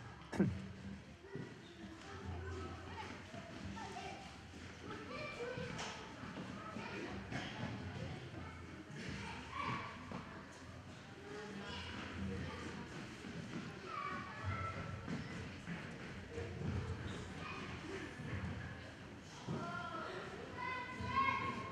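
An elderly man speaks quietly into a microphone.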